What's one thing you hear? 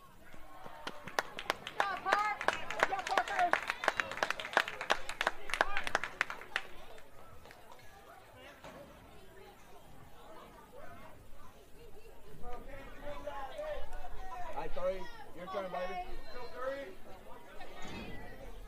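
Young players shout and cheer outdoors in the distance.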